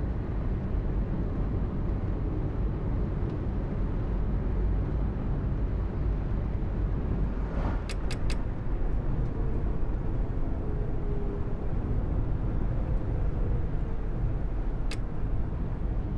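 Tyres roll on the road with a steady hiss.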